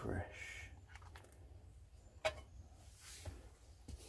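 A lump of butter drops onto a metal pan.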